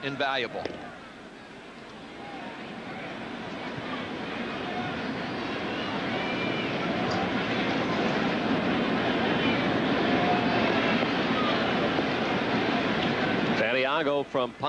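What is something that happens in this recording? A large stadium crowd cheers, the roar slowly swelling louder.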